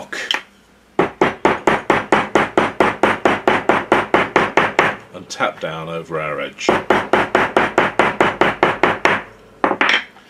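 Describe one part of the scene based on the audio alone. A hammer taps rapidly and evenly on leather.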